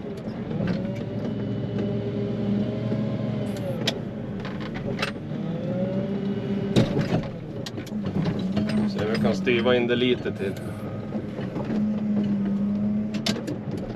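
A loader's diesel engine rumbles and changes pitch as it works.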